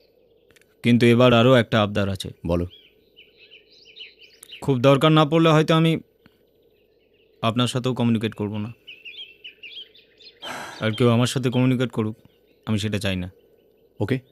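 A middle-aged man speaks tensely and close by.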